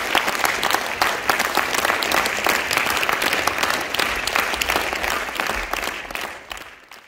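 An audience applauds loudly in a large hall, fading at the end.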